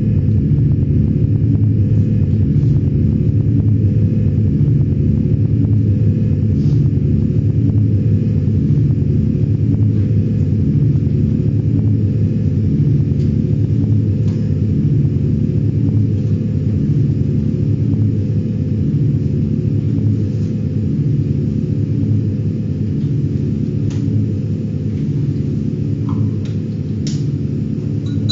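Low, droning electronic music pulses steadily through loudspeakers.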